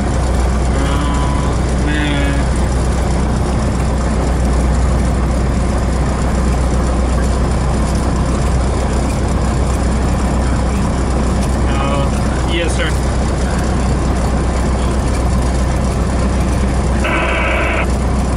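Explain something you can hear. A propeller aircraft engine drones steadily up close.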